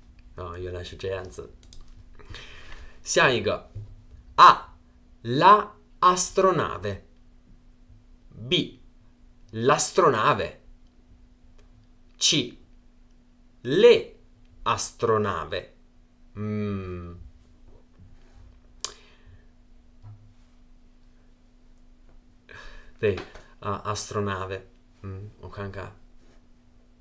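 A young man speaks calmly and clearly into a close microphone, with pauses.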